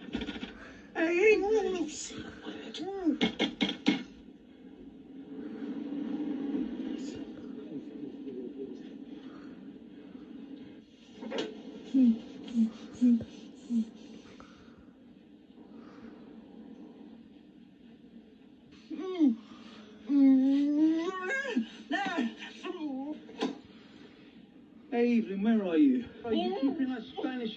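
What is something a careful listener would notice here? A woman cries out, muffled by a hand over her mouth.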